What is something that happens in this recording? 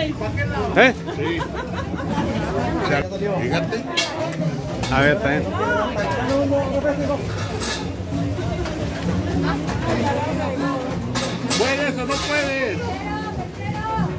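A crowd of women and girls chatters around.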